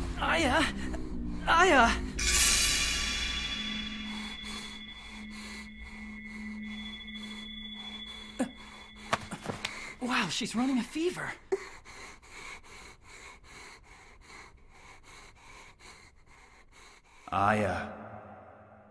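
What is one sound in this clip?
A young woman speaks softly and breathily close by.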